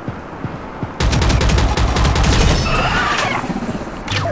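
An automatic rifle fires loud rapid bursts.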